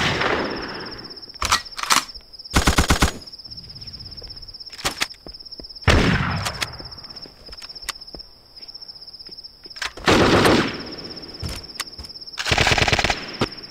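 Metal weapons clatter and click as they are picked up.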